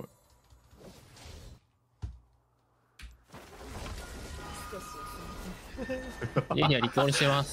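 Fantasy battle sound effects clash and whoosh.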